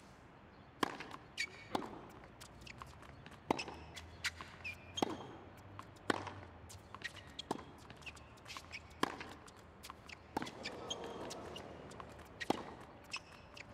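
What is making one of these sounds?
Sneakers squeak on a hard court.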